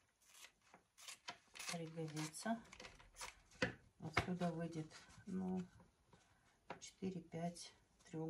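Scissors snip through thin plastic.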